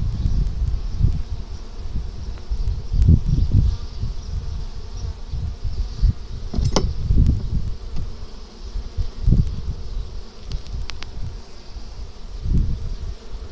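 Wind buffets the microphone outdoors.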